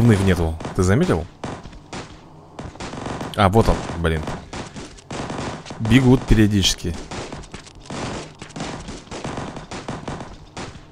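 Cartoon gunfire crackles in quick bursts.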